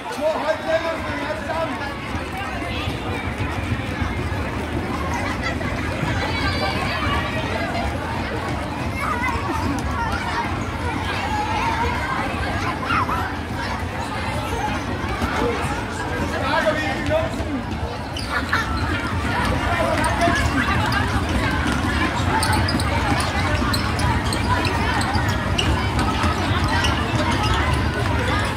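Many feet stamp and shuffle on a wooden floor.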